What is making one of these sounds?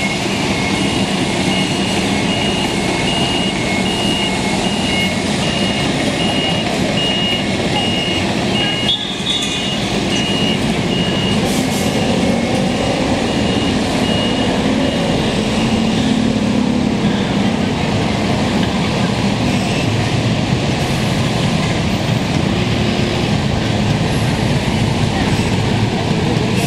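A diesel dump truck rumbles along the street.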